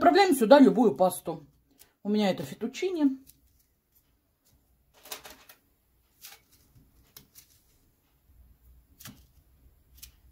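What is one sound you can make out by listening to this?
Dry pasta rustles as it is set into sauce.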